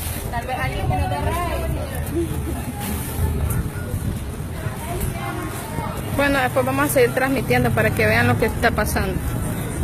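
Footsteps shuffle on pavement as a crowd walks.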